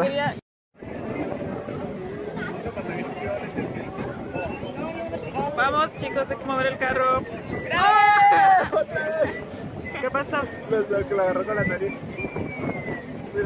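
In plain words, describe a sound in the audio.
A crowd murmurs on a beach outdoors.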